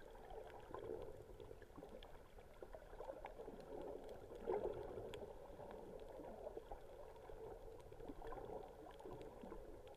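Water rumbles and hums, heard muffled from underwater.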